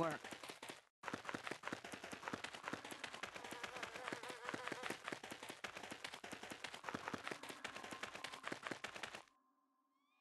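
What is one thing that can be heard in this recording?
Footsteps run quickly over gravelly ground.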